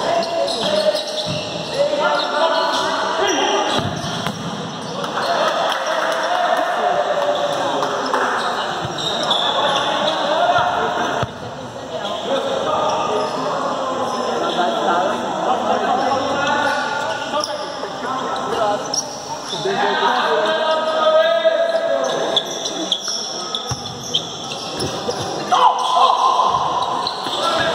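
Men shout and call out across a large echoing hall.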